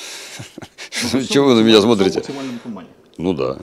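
A man speaks calmly and cheerfully, close to a microphone.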